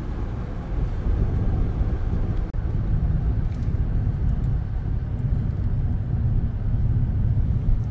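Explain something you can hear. A vehicle's engine hums steadily.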